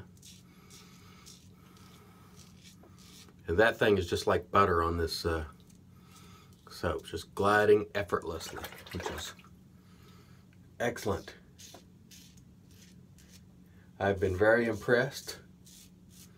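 A razor scrapes through stubble.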